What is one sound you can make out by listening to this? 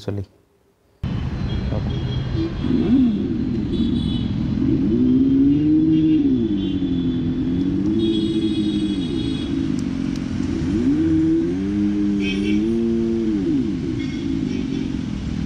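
A motorcycle hums steadily and whines up and down in pitch.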